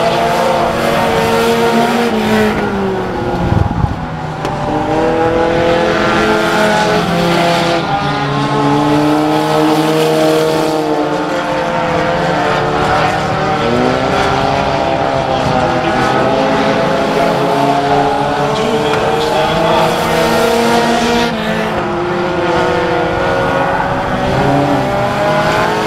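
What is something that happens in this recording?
Race car engines roar and whine loudly around a dirt track, outdoors.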